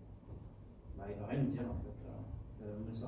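A young man speaks calmly in a hall.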